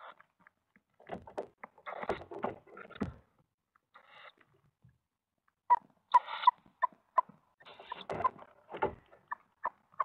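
An adult owl shuffles and rustles its feathers in the nest.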